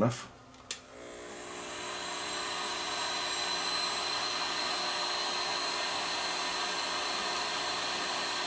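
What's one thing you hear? A heat gun blows with a steady rushing roar.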